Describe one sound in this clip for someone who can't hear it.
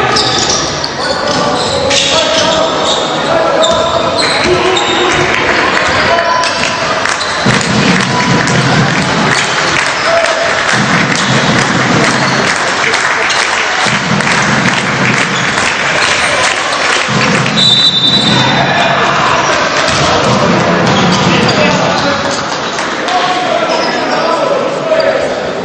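Basketball shoes squeak on a hardwood court.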